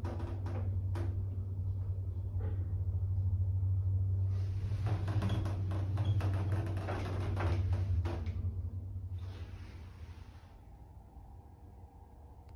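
An elevator hums steadily while moving.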